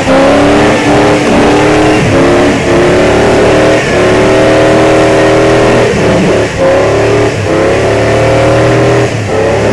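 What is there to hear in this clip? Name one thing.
Spinning tyres spray snow and slush.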